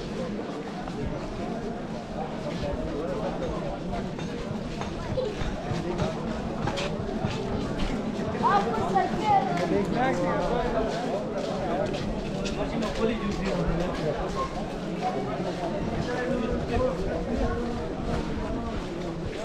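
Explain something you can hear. Footsteps shuffle on a paved street.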